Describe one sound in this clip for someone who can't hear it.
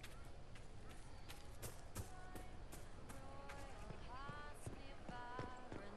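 Footsteps patter quickly across grass and stone.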